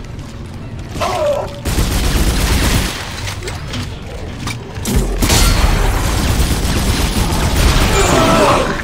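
A monster shrieks and snarls.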